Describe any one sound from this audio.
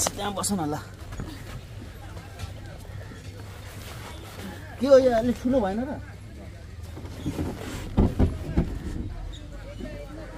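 Feet thud on a wooden boat as people climb in.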